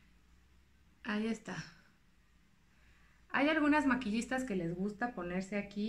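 A young woman speaks close by, casually and with animation.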